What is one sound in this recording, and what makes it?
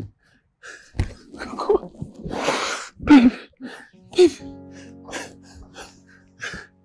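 A woman sobs and cries out close by.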